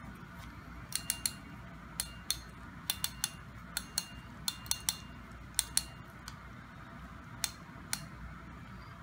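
Small plastic parts click sharply against a fishing reel.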